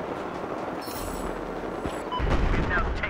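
A short electronic chime rings.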